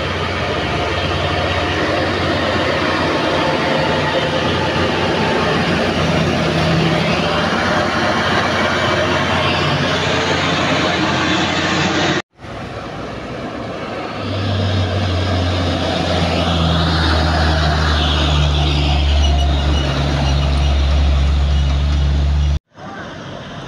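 Tyres roll and hiss on a road as trucks pass.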